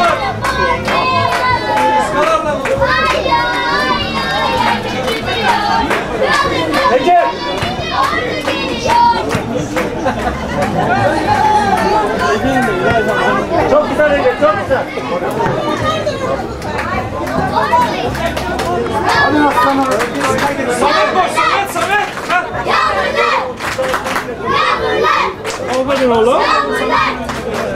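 Men in a crowd of spectators nearby talk and shout with animation, outdoors.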